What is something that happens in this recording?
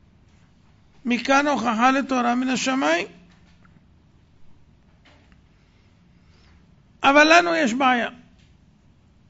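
A middle-aged man chants melodically into a microphone in short phrases.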